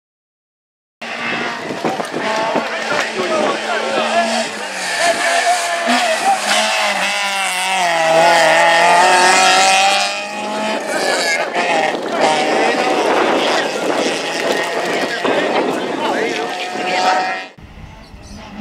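A Peugeot 205 GTI rally car engine revs hard as the car accelerates through bends.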